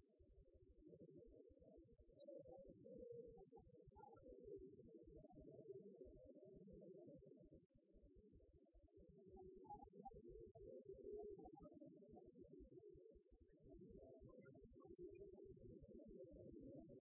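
Many adults chat at the same time, muffled, in a large echoing hall.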